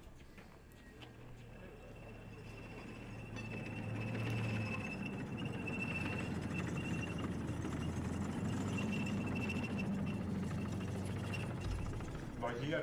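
An armoured vehicle's engine rumbles low and steadily.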